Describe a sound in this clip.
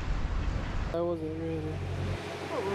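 A goose honks nearby.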